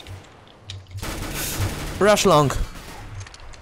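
A submachine gun fires a burst.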